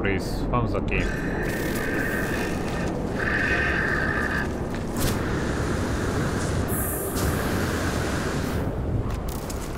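Wind howls in a steady storm.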